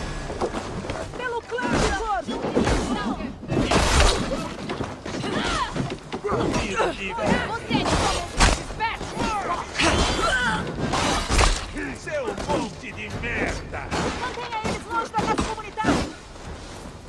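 Men shout and grunt fiercely in a fight.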